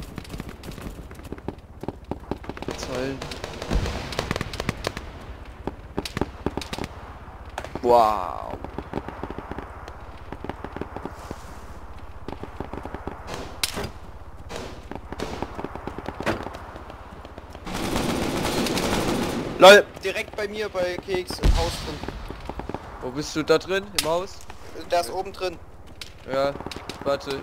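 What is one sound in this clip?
Footsteps crunch steadily over dry ground and gravel.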